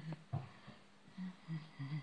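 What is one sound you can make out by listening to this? Hands knead soft dough.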